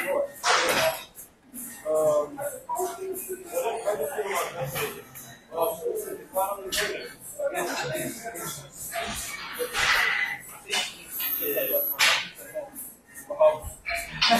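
A weight machine clanks softly as its weights lift and lower.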